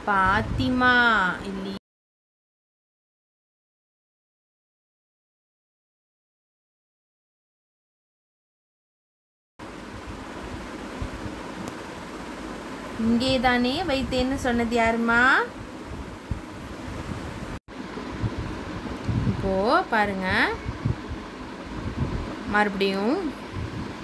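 A young woman speaks in a teaching tone, close to a phone microphone.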